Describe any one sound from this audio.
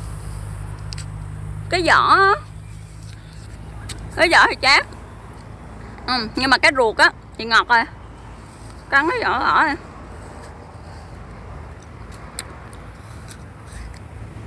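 A young woman bites into a crisp fruit with a crunch.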